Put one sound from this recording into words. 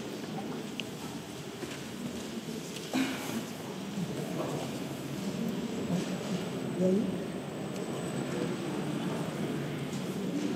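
Several people murmur and talk quietly in a room.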